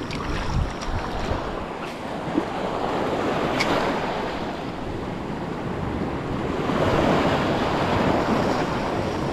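Rough water rushes and splashes steadily close by.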